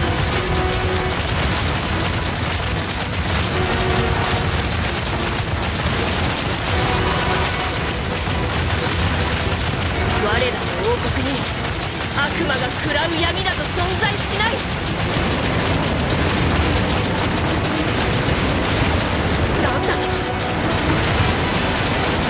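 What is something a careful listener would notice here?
Explosions boom and crackle over and over.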